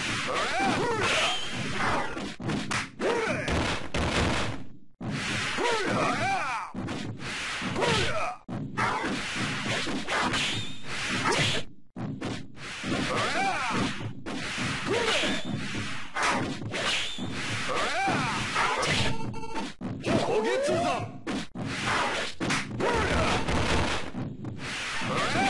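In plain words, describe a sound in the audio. Sword slashes and hits clash sharply in a fighting game.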